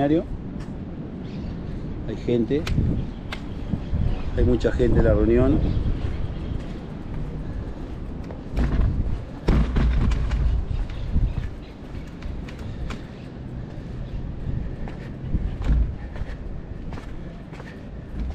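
Wind gusts outdoors and rumbles against the microphone.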